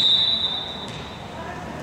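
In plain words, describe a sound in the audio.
A referee's whistle blows sharply in a large echoing gym.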